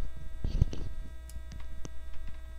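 A small cardboard box rattles as a hand handles it.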